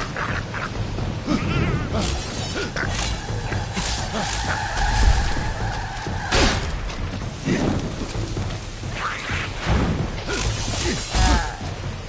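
Creatures snarl and screech.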